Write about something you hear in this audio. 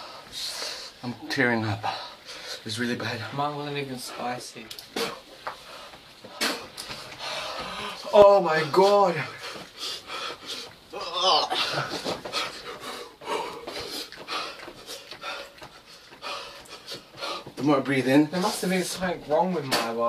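A young man sings in a wavering voice, close by.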